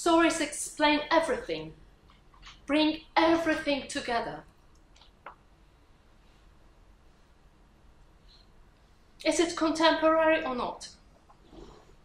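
A woman speaks calmly through a microphone, pausing now and then.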